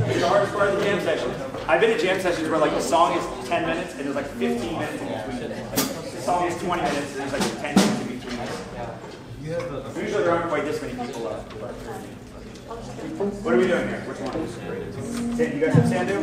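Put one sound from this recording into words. A saxophone section plays a lively jazz tune together.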